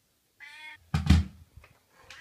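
A bare foot steps onto a scale with a soft thud.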